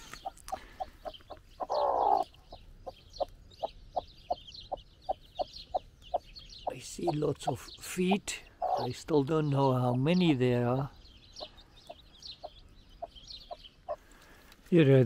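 Chicks cheep in high, rapid peeps.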